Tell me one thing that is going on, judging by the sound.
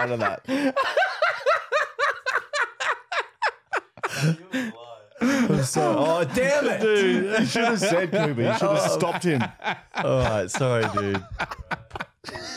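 A man laughs heartily close to a microphone.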